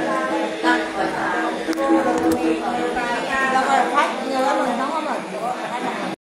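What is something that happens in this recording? An elderly woman sings in a wavering voice nearby.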